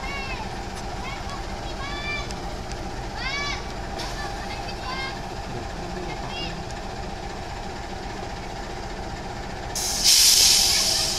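A diesel locomotive rumbles steadily as it approaches slowly.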